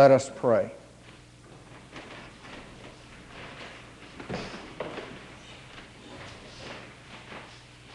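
People shuffle and sit down on creaking wooden pews.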